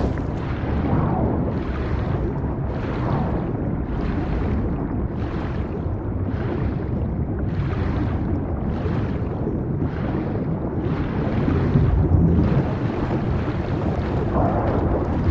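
A muffled underwater rumble drones throughout.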